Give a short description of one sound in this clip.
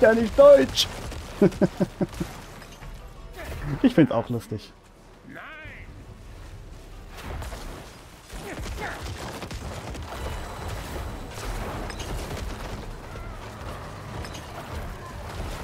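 Game battle effects whoosh and crash.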